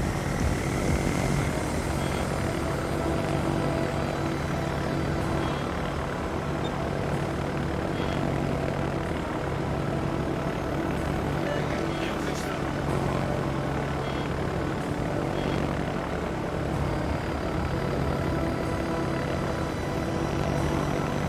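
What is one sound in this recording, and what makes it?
Aircraft engines drone steadily overhead.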